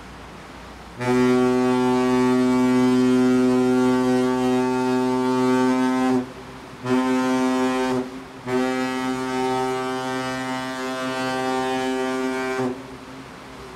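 A ship's horn sounds in long, loud blasts.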